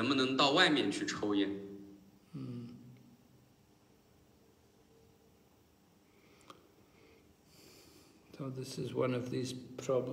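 An elderly man speaks close to a phone microphone, in a calm, low voice.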